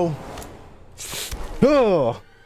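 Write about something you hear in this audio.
A heavy punch lands with a dull thud.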